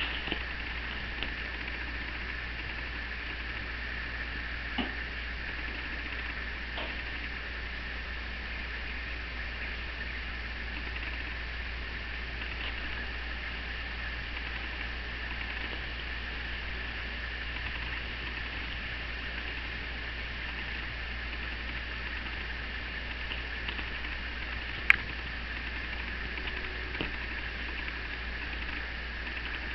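Bedding rustles softly as a cat tussles with a soft toy.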